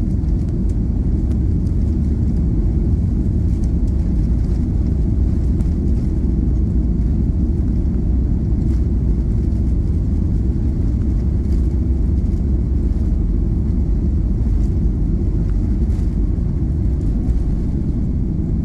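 Wheels rumble and thud along a runway.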